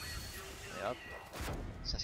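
Electric energy crackles and zaps.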